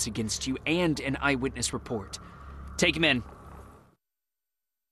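A man speaks sternly and firmly, close by.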